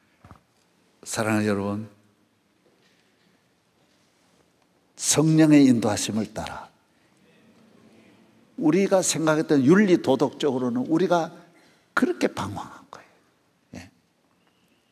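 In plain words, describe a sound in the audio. A middle-aged man speaks with animation through a microphone in a large echoing hall, in short bursts with pauses.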